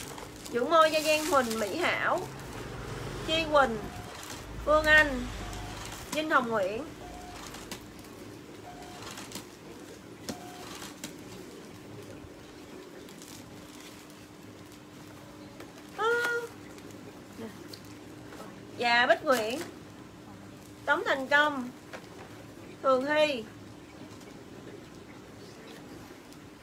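Plastic bags rustle as they are handled.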